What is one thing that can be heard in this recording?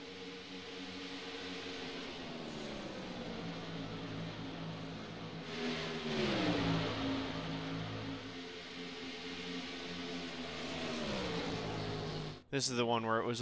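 Racing car engines drone steadily, their pitch rising and falling.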